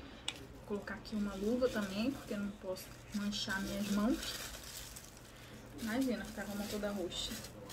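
Plastic wrapping crinkles in hands.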